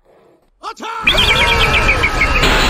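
Game sound effects play as a cartoon bird is flung from a slingshot.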